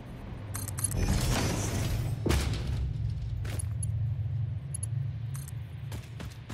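A tool beam crackles and fizzes with sparks.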